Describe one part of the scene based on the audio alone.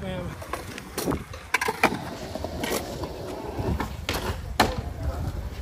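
A skateboard clacks sharply as it lands.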